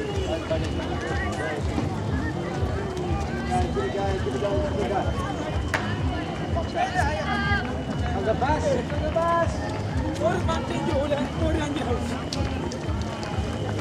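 A crowd of men and women chatter and call out outdoors.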